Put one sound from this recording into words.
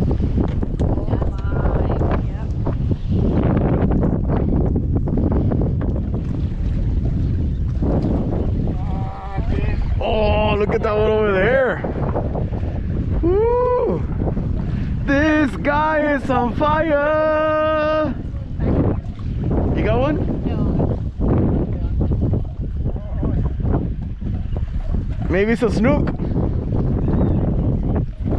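Wind buffets the microphone outdoors over open water.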